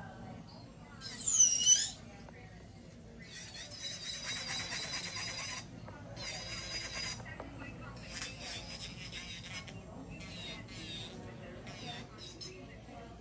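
An electric nail drill whirs in short high-pitched bursts against a nail.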